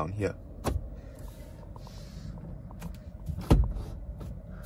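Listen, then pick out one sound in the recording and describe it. A plastic lever clicks as a hand pulls it.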